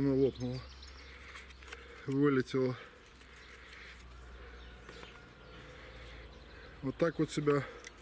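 Wooden discs click against each other in a man's hands.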